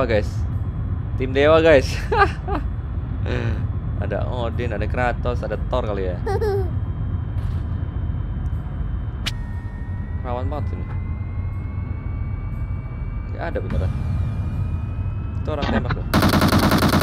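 A car engine hums and rises in pitch.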